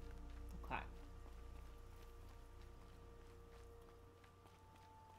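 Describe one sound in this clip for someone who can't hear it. Footsteps run over rocky ground.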